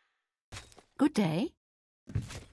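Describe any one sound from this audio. A young woman says a short greeting in a friendly voice.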